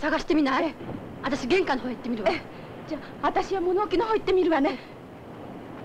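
A young woman speaks quietly up close.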